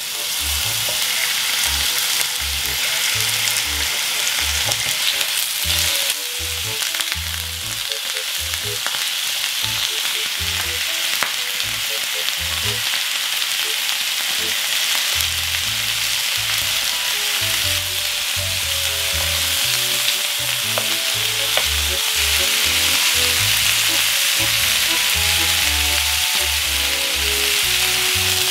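Chicken sizzles in hot oil in a frying pan.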